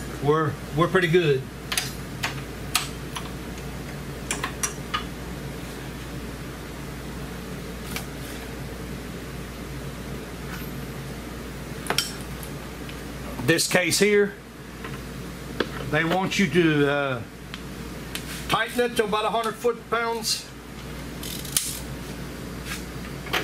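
Metal tools click and clink against metal parts.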